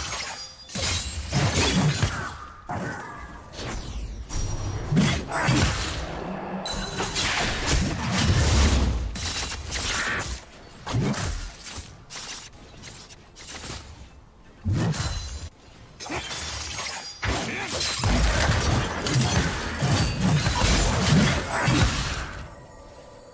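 Game spell effects whoosh, clash and explode in quick bursts.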